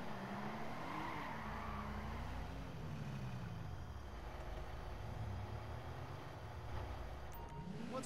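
A car engine hums and revs as the car drives slowly.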